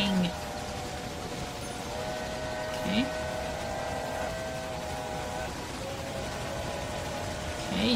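A steam train rumbles along the tracks.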